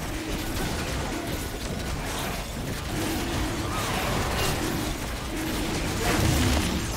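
Weapons clash in quick blows.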